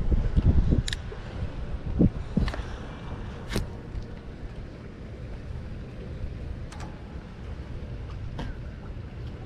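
A fishing reel clicks sharply as it is handled.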